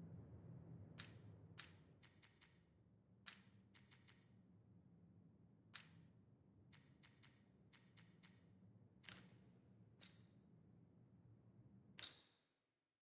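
Sharp menu clicks tick now and then.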